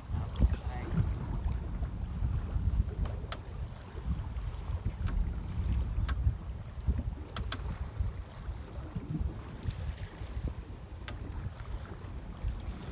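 Wind blows hard across open water, buffeting loudly.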